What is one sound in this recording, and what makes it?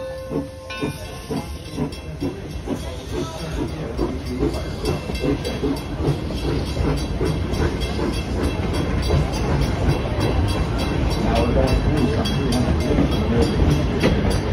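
Train wheels clatter steadily over the rails.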